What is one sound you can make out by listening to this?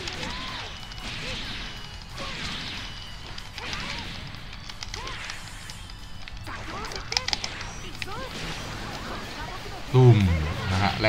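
Energy blasts crackle and explode in a fight.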